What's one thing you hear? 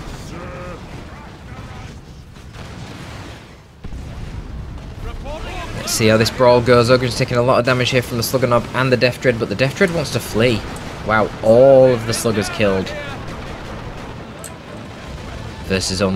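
Guns fire in rapid bursts during a battle.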